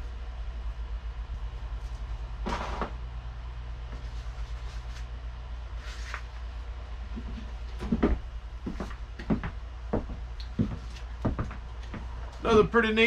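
Objects are moved about with light knocks and rustles.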